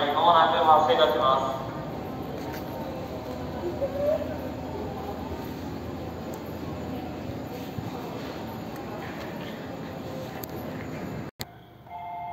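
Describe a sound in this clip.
A train rumbles along past the platform.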